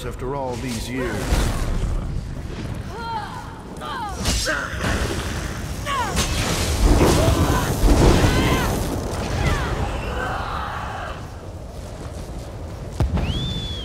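Electric magic crackles and zaps.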